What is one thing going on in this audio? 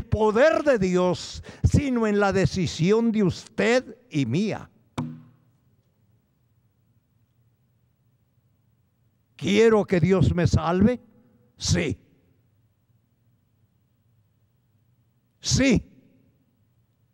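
An elderly man speaks slowly and emphatically into a microphone, with pauses between phrases.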